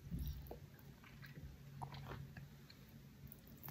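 A man slurps noodles close to a microphone.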